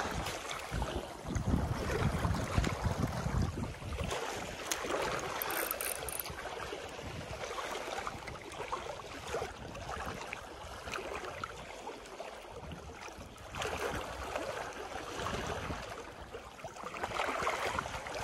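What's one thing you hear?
A fishing reel clicks and whirs as its line is wound in.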